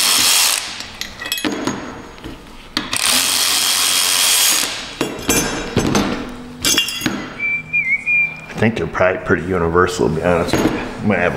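Metal parts clink against each other on a metal surface.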